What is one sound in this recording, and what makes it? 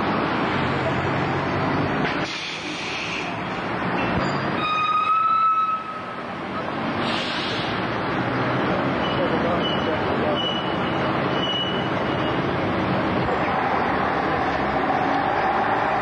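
A bus engine idles with a low rumble nearby.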